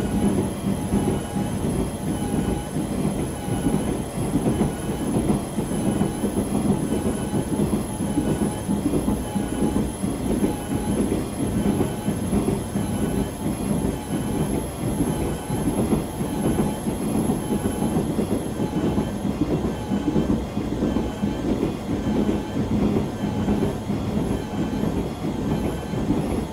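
A train rumbles steadily along the tracks with a constant electric hum.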